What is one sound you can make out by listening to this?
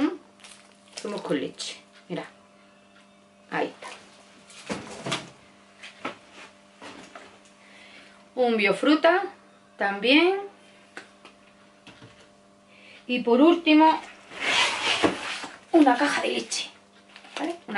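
Cardboard cartons rustle and thump as a woman handles them.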